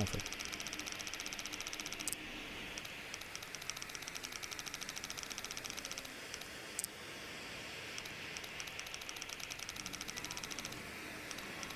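A combination dial clicks rapidly as it turns.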